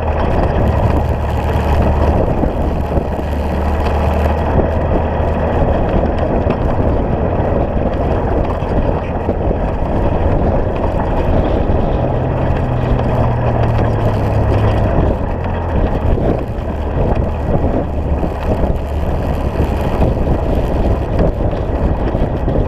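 An engine hums steadily while moving.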